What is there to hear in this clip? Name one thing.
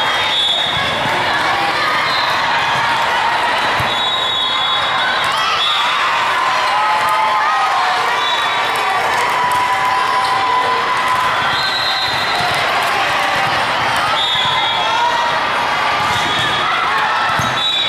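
A crowd chatters and murmurs throughout a large echoing hall.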